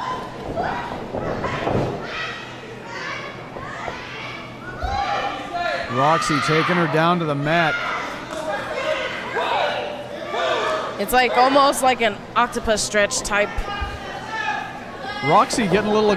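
A crowd of men and women shout and cheer.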